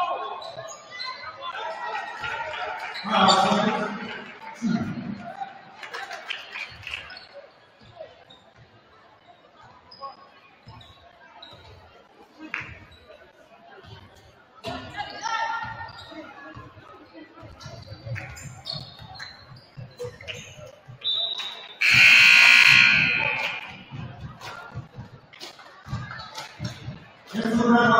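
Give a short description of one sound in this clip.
Basketball shoes squeak on a hardwood court.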